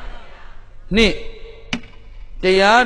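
A plastic cup taps down on a hard surface.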